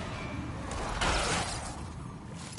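A heavy cell door grinds open.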